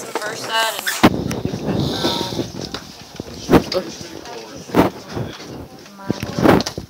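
Cloth rustles and thumps against a microphone.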